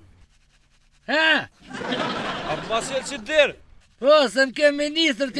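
A man laughs and talks in a cheerful, singing voice.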